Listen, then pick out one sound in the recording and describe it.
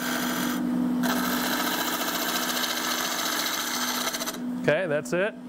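A chisel scrapes against spinning wood with a hiss.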